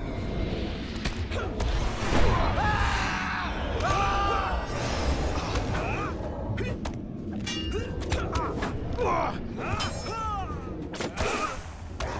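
Weapons clash and strike in a close fight.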